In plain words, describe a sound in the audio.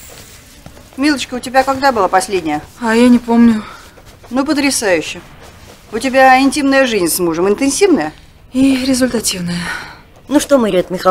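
A middle-aged woman talks loudly with animation.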